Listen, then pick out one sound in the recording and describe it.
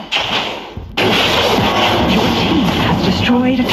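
A tower crumbles with a loud, rumbling crash.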